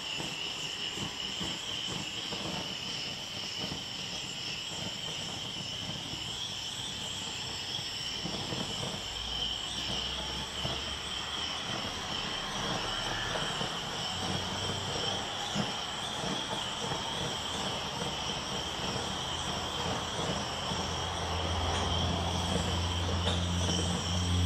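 A small gas torch hisses and roars steadily, close by.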